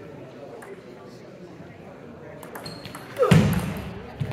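A table tennis ball clicks back and forth on bats and a table in an echoing hall.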